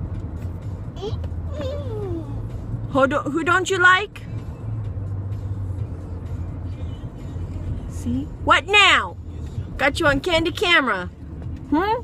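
A young boy speaks up close in short, lively bursts.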